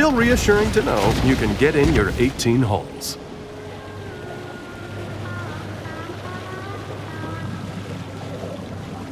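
Water splashes and swirls as a large fish swims at the surface.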